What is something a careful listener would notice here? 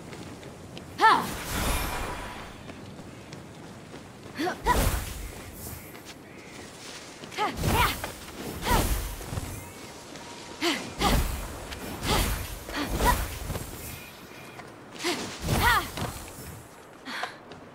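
Wings whoosh and flap in short bursts.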